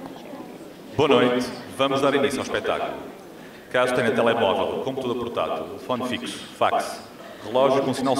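A man speaks loudly through a loudspeaker in a large hall.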